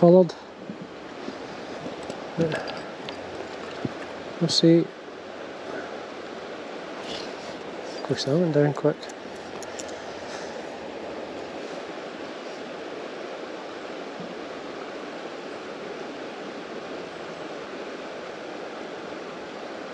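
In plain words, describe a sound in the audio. A river flows steadily close by.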